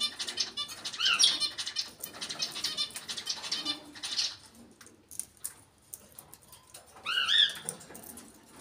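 A parrot lets out loud, sharp whistles.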